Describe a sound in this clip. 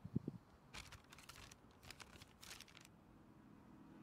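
A paper map rustles as it is unfolded.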